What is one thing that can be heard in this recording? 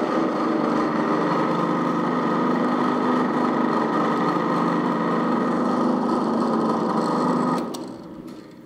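A pillar drill runs with a steady motor hum, then shuts off.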